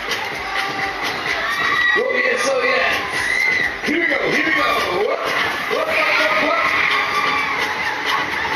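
A fairground ride whirs and rattles as it spins quickly.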